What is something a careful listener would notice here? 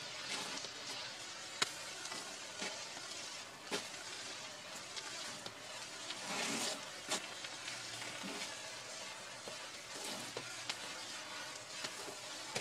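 A flare crackles and pops sharply now and then.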